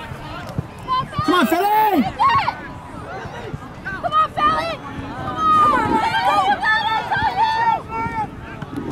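Young men shout to each other from across an open field.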